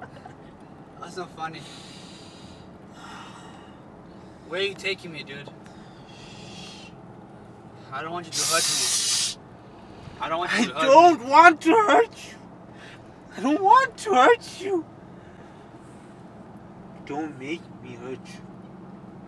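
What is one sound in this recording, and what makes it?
A young man talks casually up close.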